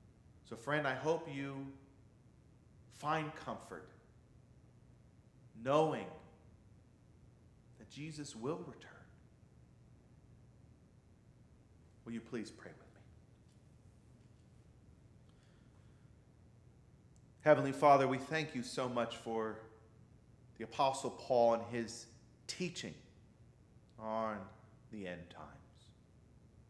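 A man speaks slowly and deliberately into a microphone, with long pauses.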